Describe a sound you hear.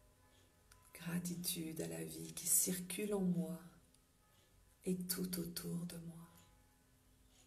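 A middle-aged woman speaks softly and close by.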